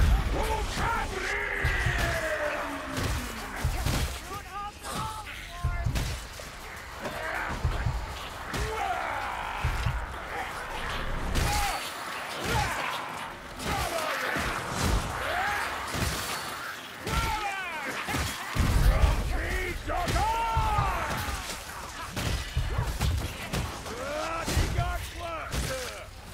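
Blades slash and thud against creatures.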